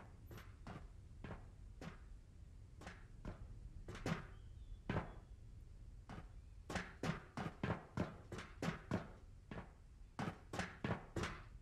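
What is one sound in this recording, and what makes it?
Boots thud and clank on metal ladder rungs in a steady climbing rhythm.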